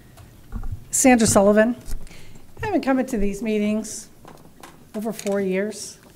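A woman speaks clearly into a microphone in a large room.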